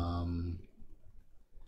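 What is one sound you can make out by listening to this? A short buzzing computer game tone sounds.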